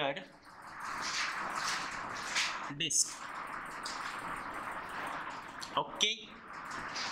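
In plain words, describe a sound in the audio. A man speaks briefly through a headset microphone.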